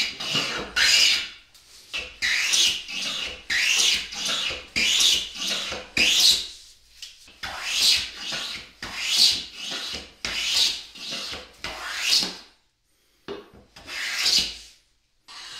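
A hand plane shaves along the edge of a hardwood board in repeated strokes.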